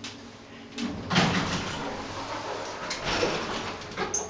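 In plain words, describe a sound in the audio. Elevator doors slide open with a rumble.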